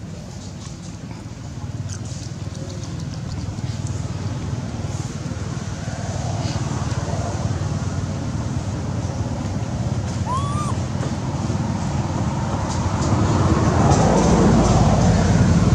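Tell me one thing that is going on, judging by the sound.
A monkey chews soft fruit wetly up close.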